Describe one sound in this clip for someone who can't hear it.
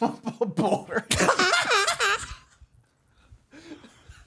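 A man laughs heartily into a microphone.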